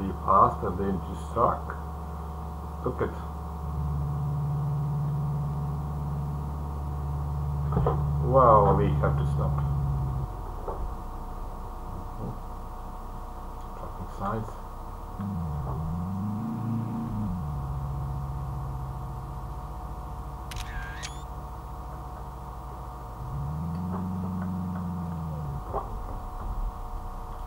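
A car engine hums steadily, its pitch rising and falling with gear changes.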